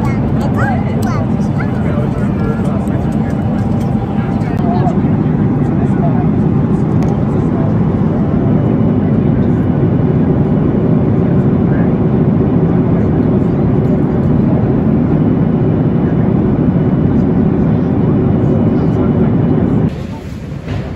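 A jet engine roars steadily inside an aircraft cabin.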